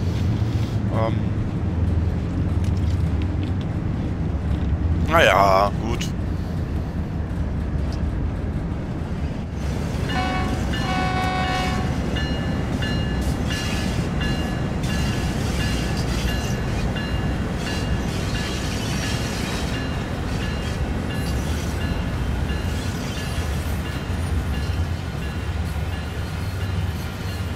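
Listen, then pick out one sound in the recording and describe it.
Train wheels clatter and roll along the rails.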